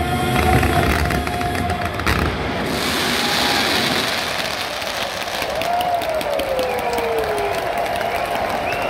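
Fireworks crackle and pop loudly in a large open stadium.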